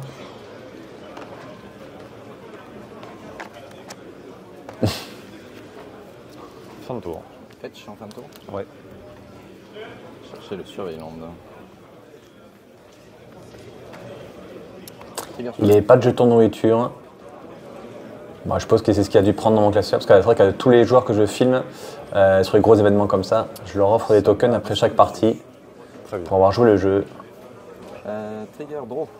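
Playing cards tap and slide on a table.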